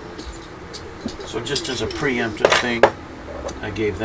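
Plastic model parts rattle and clatter as a frame of parts is picked up.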